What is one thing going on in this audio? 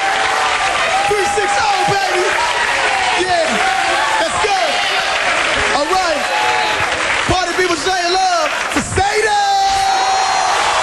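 A man speaks with excitement through a microphone.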